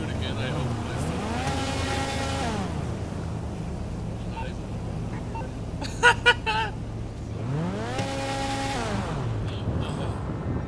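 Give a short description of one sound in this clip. A car engine revs up and then drops back.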